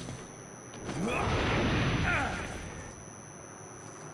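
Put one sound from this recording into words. A laser beam sweeps past with a loud rushing hum.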